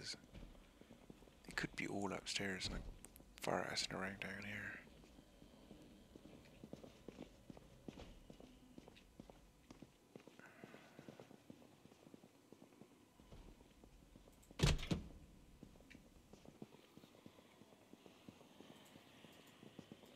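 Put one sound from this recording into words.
Footsteps tap softly across a hard floor.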